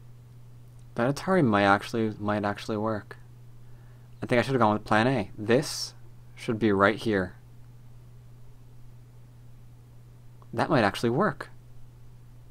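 A man talks calmly and close to a microphone, in short bursts.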